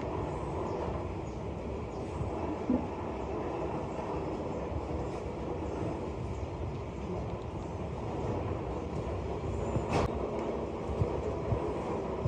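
Heavy plaster moulds knock and scrape against each other.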